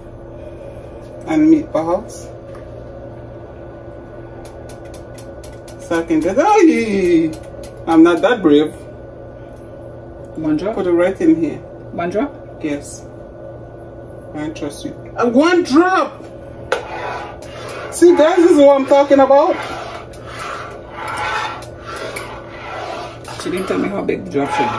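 A spoon stirs thick soup in a metal pot.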